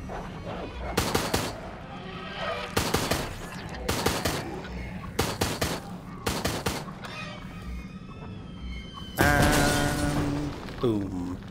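Gunshots and explosions sound from a game.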